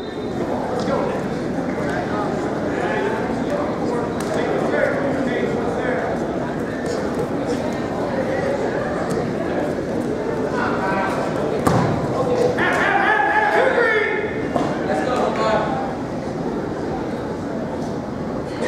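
Wrestlers' shoes squeak and thud on a mat.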